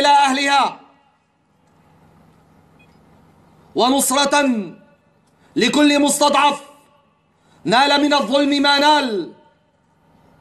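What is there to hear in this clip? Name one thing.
A man shouts a speech forcefully through a microphone and loudspeakers, in short bursts with pauses.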